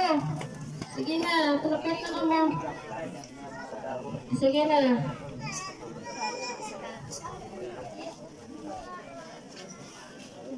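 A crowd of adults and children chatter outdoors.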